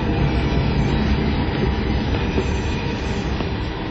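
A bag scrapes and drags along a hard floor.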